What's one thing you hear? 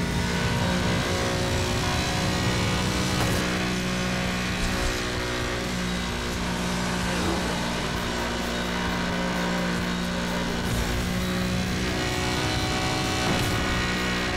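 Tyres hum on asphalt.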